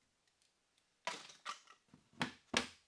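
A rubber mallet knocks repeatedly on a board.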